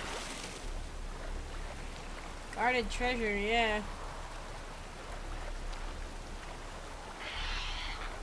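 Water splashes with swimming strokes.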